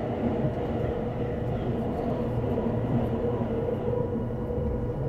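Another train rushes past close by with a loud whoosh.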